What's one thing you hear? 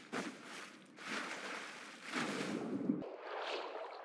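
A character splashes into water.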